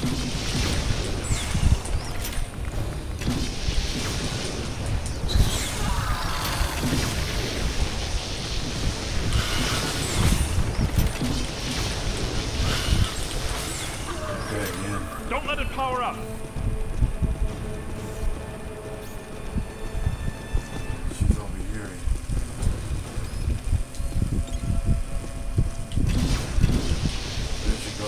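A crackling energy beam fires in bursts.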